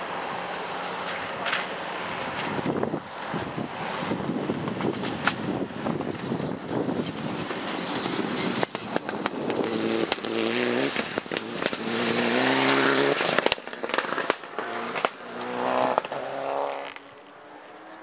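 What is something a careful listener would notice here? A rally car engine roars and revs hard as it races past.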